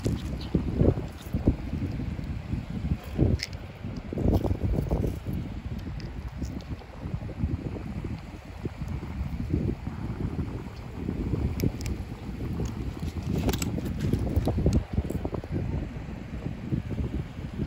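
Small shells crunch and clink as a hand picks them up.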